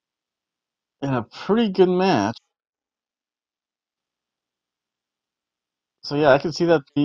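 A middle-aged man speaks calmly and close into a microphone, in short bursts with silences between.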